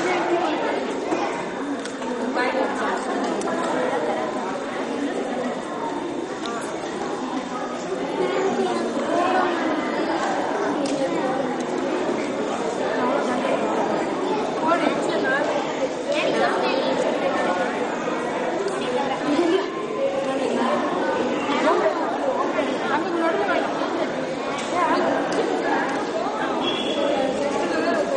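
Many children chatter and talk at once in a large, echoing room.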